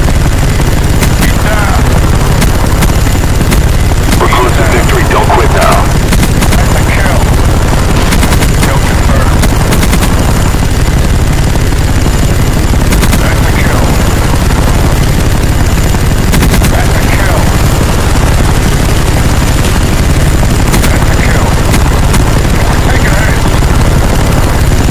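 A helicopter engine drones with a steady low rumble.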